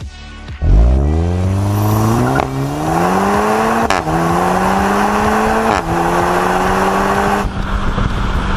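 A car engine roars as it accelerates hard, rising in pitch through several gear changes.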